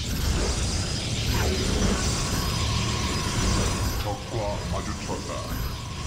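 Futuristic weapons fire and energy blasts crackle in a battle.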